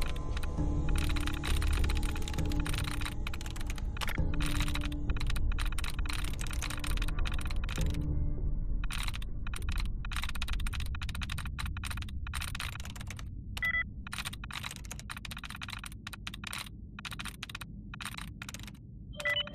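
A game terminal chirps with short electronic blips as the cursor moves.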